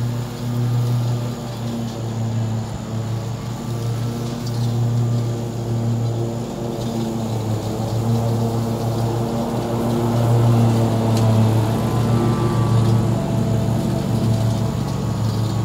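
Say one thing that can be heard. A ride-on mower engine drones steadily and grows louder as it comes closer.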